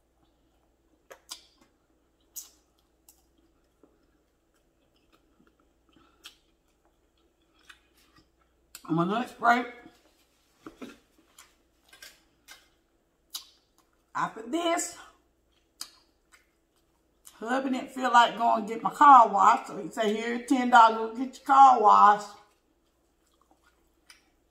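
A woman chews and slurps noodles close by.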